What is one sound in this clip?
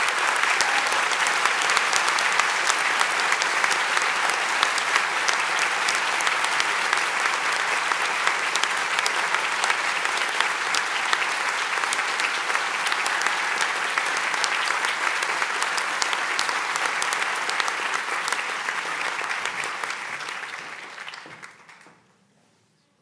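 A large audience applauds loudly in a big hall and then fades away.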